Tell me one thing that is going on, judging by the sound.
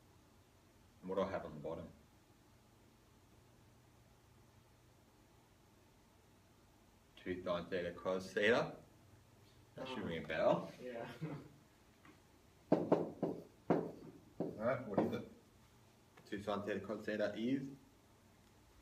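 A man speaks calmly, as if explaining.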